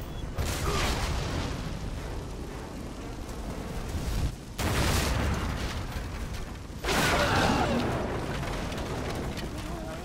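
Flames roar.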